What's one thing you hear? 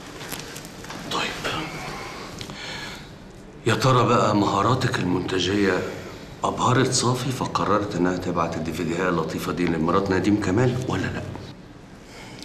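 A middle-aged man speaks forcefully, close by.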